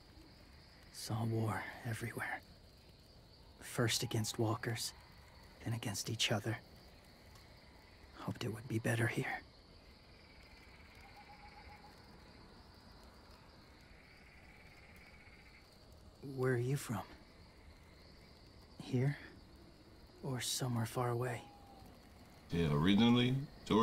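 A young man speaks quietly and sadly.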